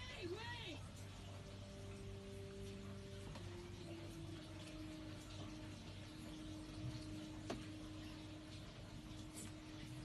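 Soft music with long held notes plays through a television loudspeaker.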